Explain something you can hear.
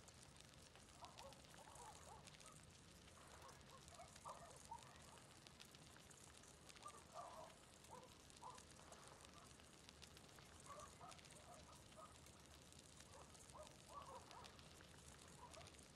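A small fire crackles.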